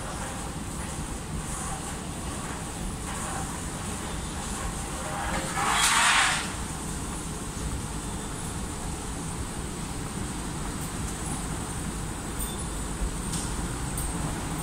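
A moving walkway hums and rumbles steadily.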